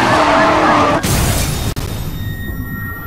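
A car crashes with a loud metallic smash.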